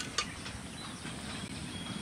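A metal spatula scrapes and stirs food in a metal pan.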